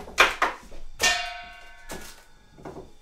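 A metal pot clanks and rings briefly.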